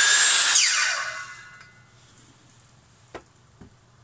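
A circular saw is set down with a knock on a wooden surface.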